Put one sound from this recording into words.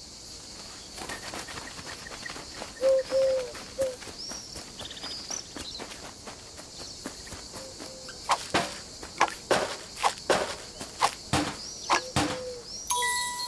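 Quick footsteps patter across dry ground.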